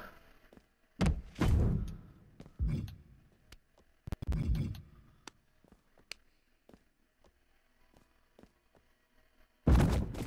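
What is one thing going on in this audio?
A body slams heavily onto a wrestling mat with a booming thud.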